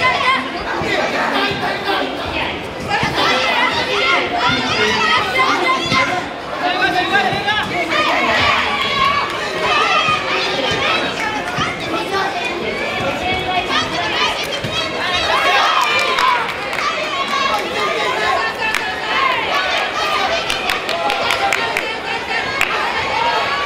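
A crowd of spectators shouts and cheers loudly throughout, in a large echoing hall.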